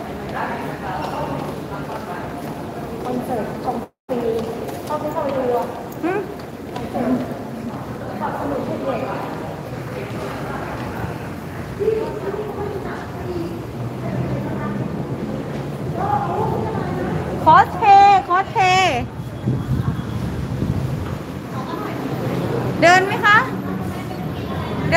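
People talk nearby.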